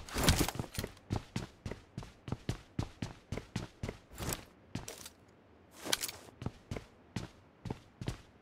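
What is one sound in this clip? Footsteps thud quickly and steadily on a hard floor.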